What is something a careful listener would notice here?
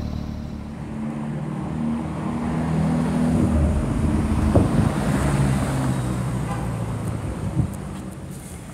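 A sports car engine roars loudly as it drives past.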